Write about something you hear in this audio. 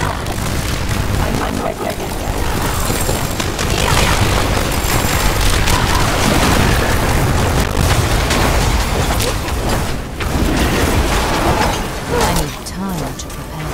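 Weapon hits thud and clash against monsters.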